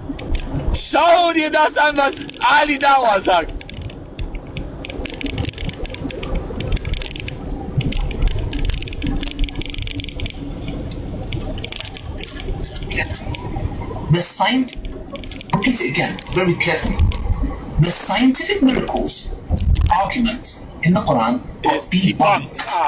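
A man speaks with animation close to a phone microphone.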